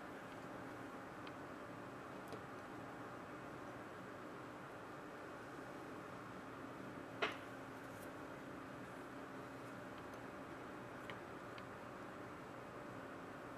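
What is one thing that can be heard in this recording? Cards tap and slide softly on a hard surface.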